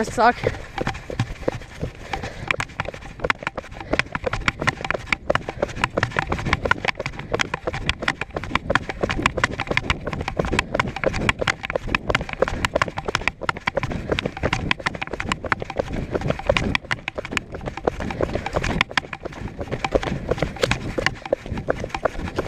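Footsteps scuff steadily along a paved road.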